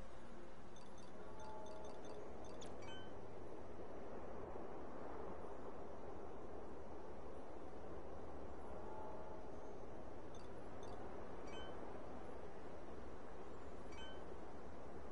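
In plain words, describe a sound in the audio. Short electronic menu blips chime now and then.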